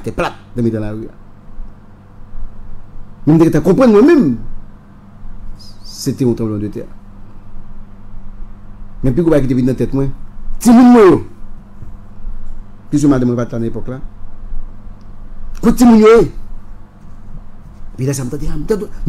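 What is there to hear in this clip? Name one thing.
A man talks with animation into a microphone close by, in bursts with pauses.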